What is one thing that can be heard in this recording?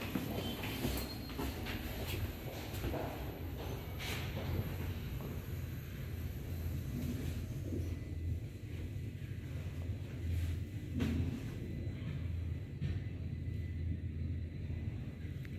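An elevator hums low and steadily as it travels.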